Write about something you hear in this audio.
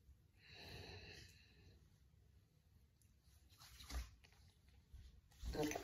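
Hands rub together softly.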